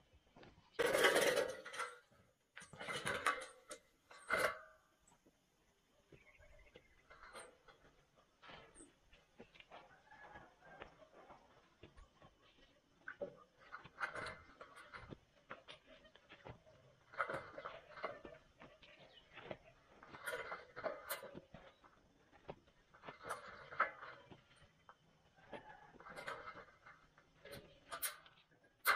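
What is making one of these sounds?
Thin metal sheets clatter and scrape as a man handles them.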